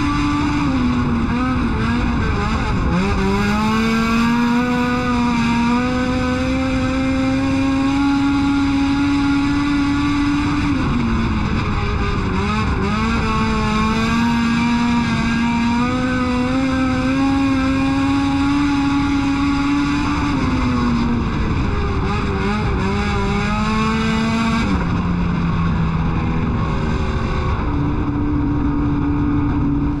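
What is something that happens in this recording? A race car engine roars loudly up close, rising and falling in pitch lap after lap.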